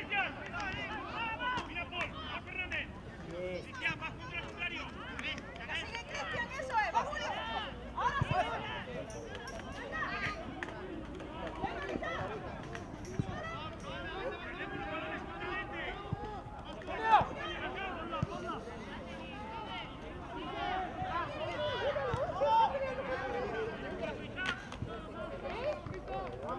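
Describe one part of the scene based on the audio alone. Young players shout and call out to each other outdoors, from near and far.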